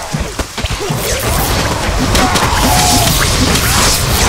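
A spell crackles and whooshes.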